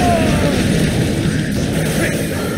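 A fiery explosion bursts with a roar.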